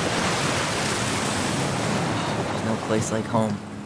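A waterfall roars loudly nearby.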